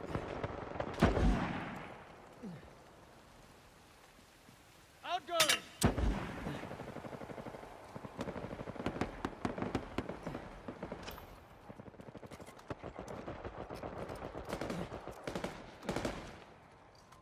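Gunshots ring out with a sharp echo.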